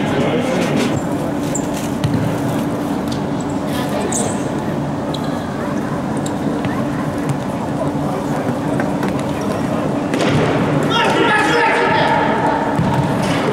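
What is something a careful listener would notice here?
A ball is kicked with dull thuds.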